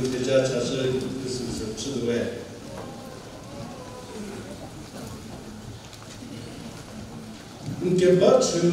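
An older man speaks calmly into a microphone over a loudspeaker, echoing in a large room.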